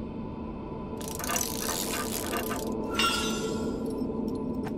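A small machine whirs and clanks briefly.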